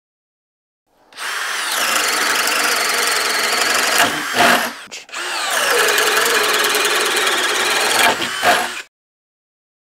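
A cordless drill whirs loudly as it bores into wood.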